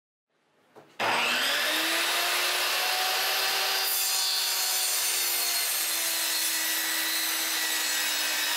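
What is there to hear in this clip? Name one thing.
A table saw whines loudly as it cuts through a wooden board.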